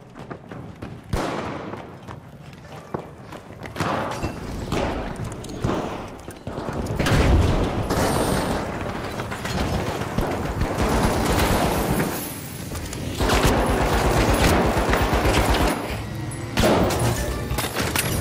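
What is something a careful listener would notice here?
Explosions boom and roar close by.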